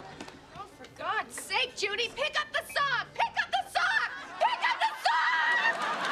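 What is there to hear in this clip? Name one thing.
A young woman shouts angrily.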